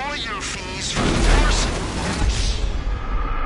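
A plane crashes into water with a loud splash.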